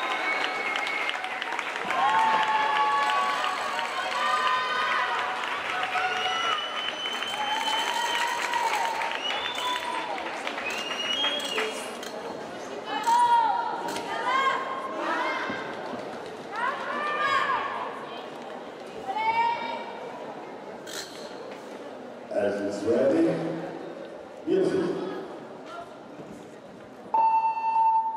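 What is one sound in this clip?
Music plays loudly through loudspeakers in a large hall.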